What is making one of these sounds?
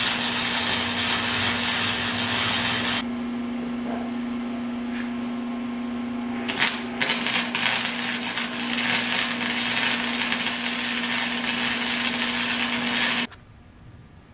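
A welder crackles and sizzles steadily.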